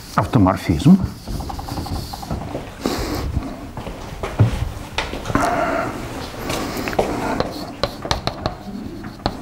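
An elderly man lectures calmly into a microphone in an echoing hall.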